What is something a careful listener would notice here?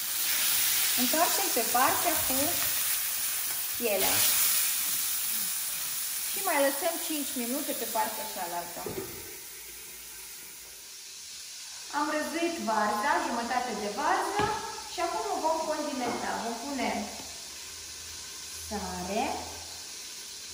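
A young woman talks calmly and clearly, close by.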